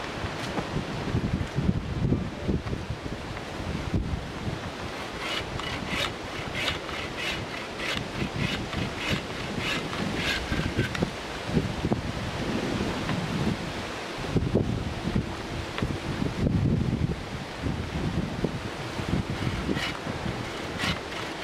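A bow saw rasps back and forth through a dry branch.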